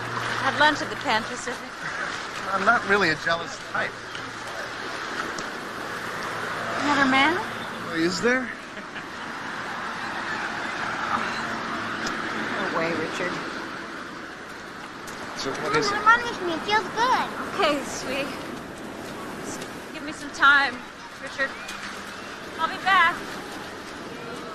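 Waves wash steadily onto a beach outdoors.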